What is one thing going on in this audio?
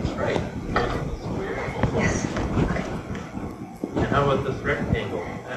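A woman speaks to an audience through a microphone in a large room.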